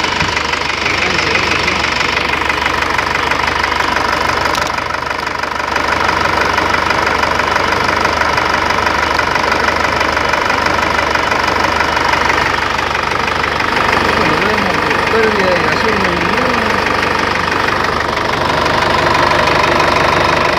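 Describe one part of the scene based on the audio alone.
An engine idles with a steady, noisy rattle close by.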